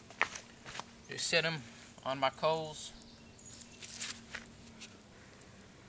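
Twigs crackle as they are placed on a fire.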